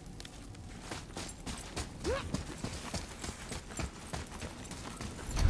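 Heavy footsteps thud on stone in an echoing passage.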